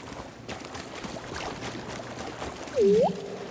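Water splashes with wading steps.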